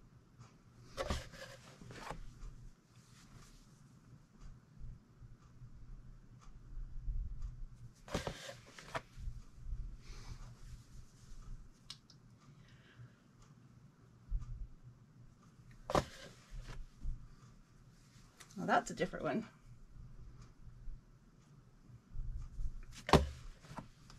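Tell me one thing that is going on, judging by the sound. Fabric rustles and flaps as it is handled.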